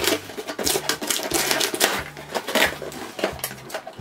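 Cardboard tears as a box flap is ripped open.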